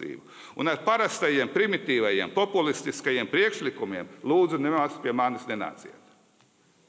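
An elderly man speaks firmly into a microphone in a large echoing hall.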